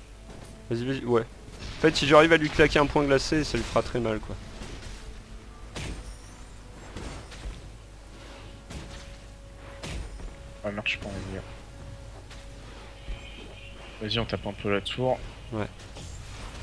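Magic spells zap and crackle as game characters fight.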